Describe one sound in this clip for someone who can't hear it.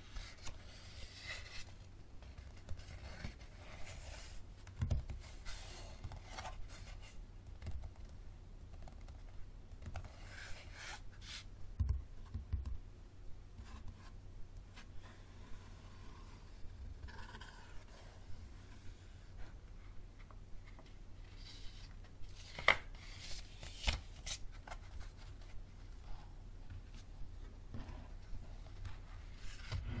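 Paper pages rustle and flip close by as they are riffled.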